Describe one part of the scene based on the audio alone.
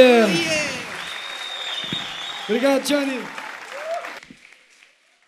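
Singers' voices ring out through loudspeakers in a large echoing hall.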